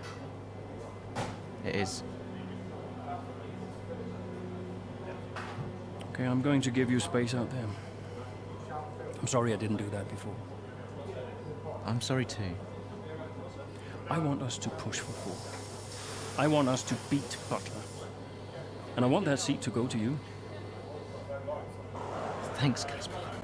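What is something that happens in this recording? A young man answers calmly and close by.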